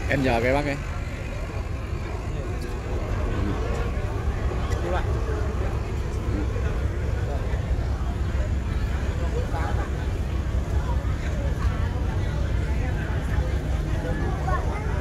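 People chatter nearby.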